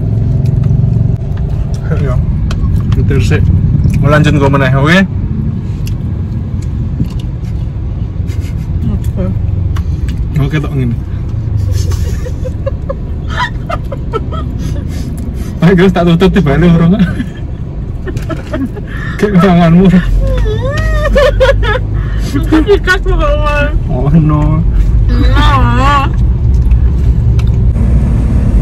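Low engine and road rumble fills a car's cabin.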